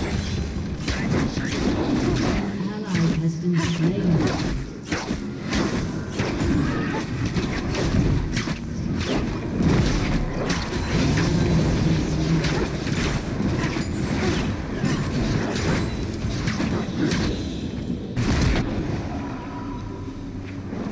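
Game combat sound effects of spells and hits clash rapidly.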